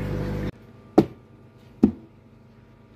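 A plastic container lid clicks and knocks.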